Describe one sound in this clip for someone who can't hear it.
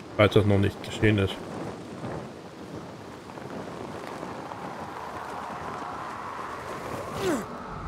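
A zip line whirs as someone slides down a cable.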